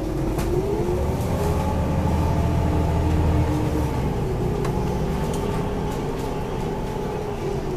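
A car's engine hums steadily from inside the moving vehicle.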